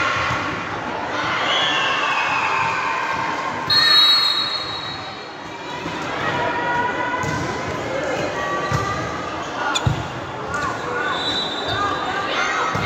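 Young men shout to each other on the court.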